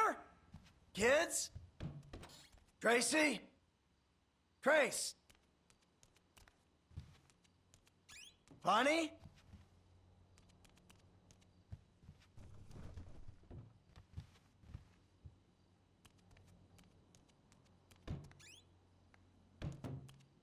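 Footsteps pad across a hard floor.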